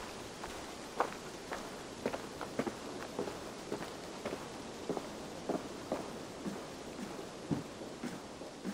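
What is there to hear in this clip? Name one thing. Footsteps thud on wooden steps and boards.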